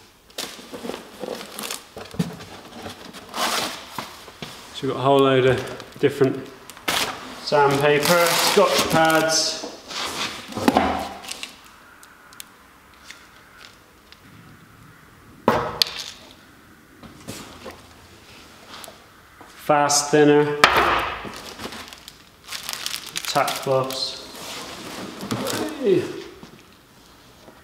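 Cardboard and packaging rustle as a box is unpacked.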